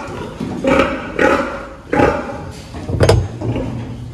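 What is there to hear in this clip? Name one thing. A plastic lid knocks as it is lifted open.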